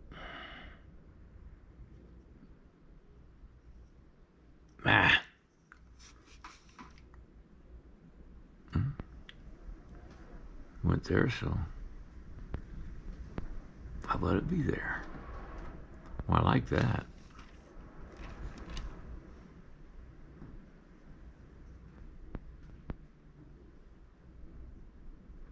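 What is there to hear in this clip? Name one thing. A small tool scrapes softly against clay.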